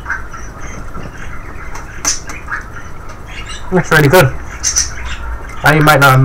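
A chocolate bar snaps as a piece is broken off.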